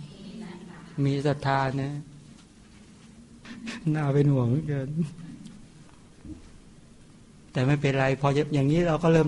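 A man chants in a deep, sung voice, in short phrases with pauses.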